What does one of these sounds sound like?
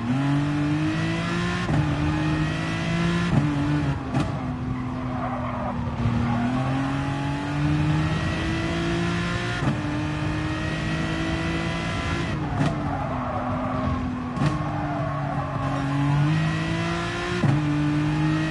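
A racing car engine revs hard, rising in pitch and dropping sharply with each gear change.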